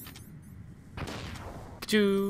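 A small grenade bursts with a crackling hiss.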